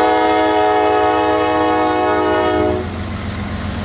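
A train horn blares loudly and steadily, then cuts off.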